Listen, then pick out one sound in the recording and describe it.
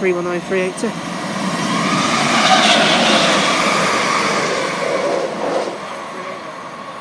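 A train rushes past close by with a loud roar and rattle.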